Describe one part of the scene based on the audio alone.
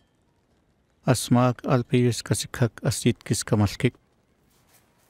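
A man speaks clearly and firmly, close by.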